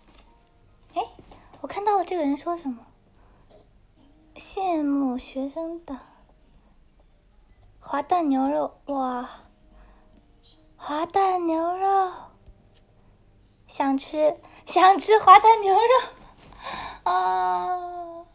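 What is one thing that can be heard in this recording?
A young woman speaks close to a microphone in an animated, sing-song voice.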